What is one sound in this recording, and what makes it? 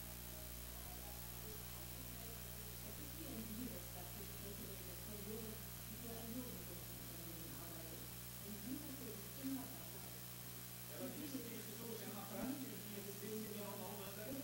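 A young woman talks cheerfully into a microphone, heard through a television speaker.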